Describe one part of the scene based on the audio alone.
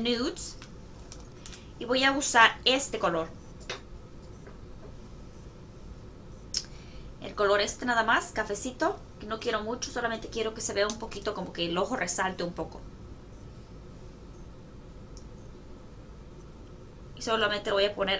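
A young woman talks calmly and close up, in short bursts with pauses.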